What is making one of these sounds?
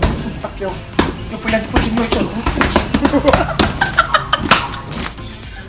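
Fists thump against a hanging punching bag.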